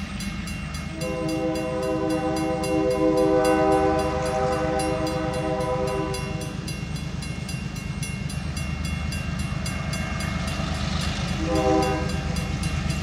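A train horn blows loudly, long and then short.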